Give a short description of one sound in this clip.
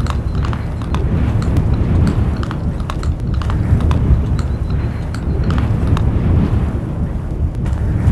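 A wolf chews and tears at meat.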